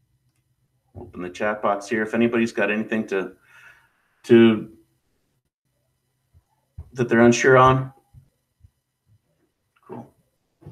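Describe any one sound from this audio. A young man talks casually into a close microphone, in short bursts with pauses.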